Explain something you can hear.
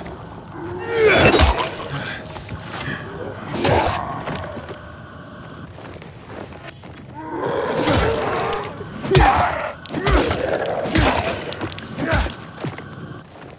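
A blade hacks into flesh with wet, heavy thuds, again and again.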